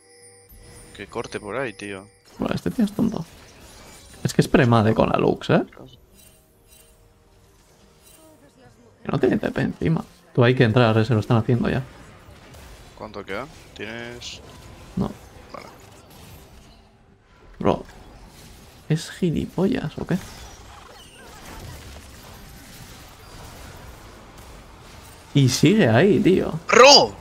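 A young man talks close to a headset microphone in short bursts.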